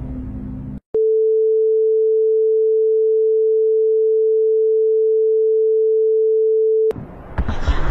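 A steady high beep tone sounds from a television.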